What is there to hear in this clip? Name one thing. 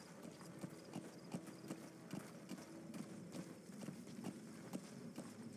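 A horse's hooves thud on dirt.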